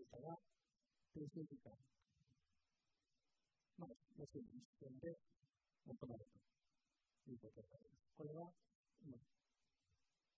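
A man lectures calmly in short phrases with pauses, heard through a microphone.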